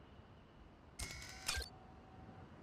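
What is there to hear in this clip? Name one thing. A short electronic chime sounds as a menu opens.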